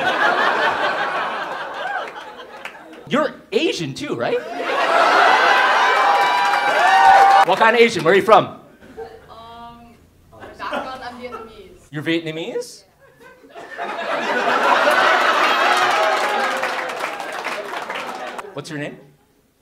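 A crowd laughs loudly.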